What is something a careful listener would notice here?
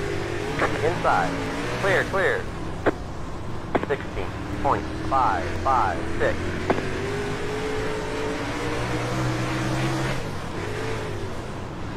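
A racing car's engine roars steadily.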